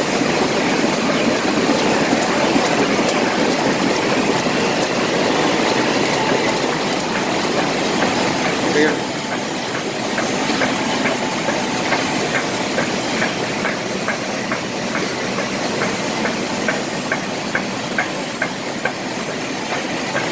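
A printing press runs with a steady loud mechanical clatter.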